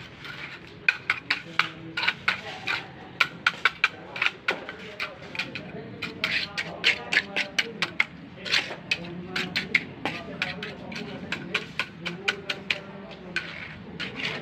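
A hand trowel slaps and taps on wet concrete.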